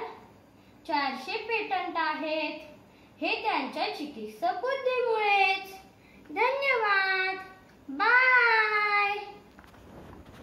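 A child speaks in a high, lively voice close by.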